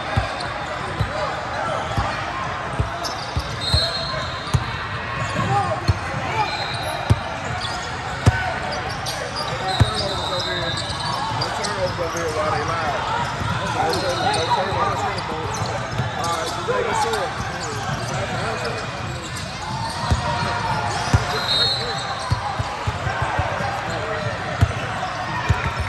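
A crowd of players and spectators chatters in the background.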